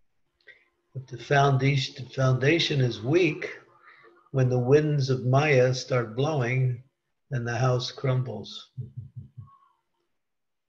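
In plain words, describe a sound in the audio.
An elderly man speaks calmly into a close microphone, heard through an online call.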